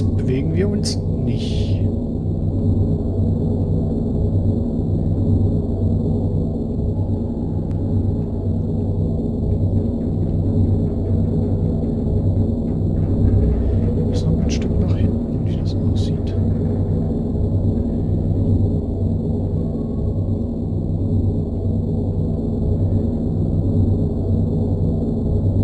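A deep underwater rumble drones steadily throughout.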